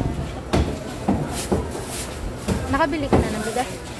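A plastic bag rustles and crinkles in a woman's hands.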